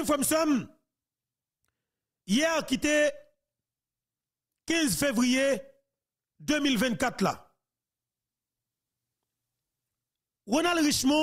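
A man speaks into a close microphone with animation, in short bursts with pauses.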